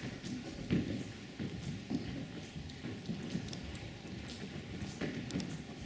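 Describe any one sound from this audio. Footsteps shuffle across a wooden floor.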